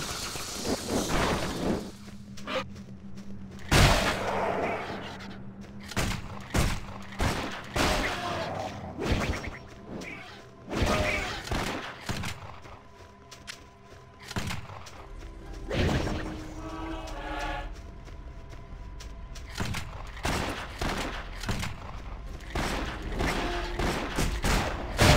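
Sharp weapon blows and magic blasts strike in quick bursts.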